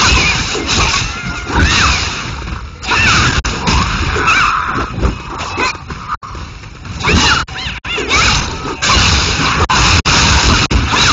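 Weapons clash and strike during a fight.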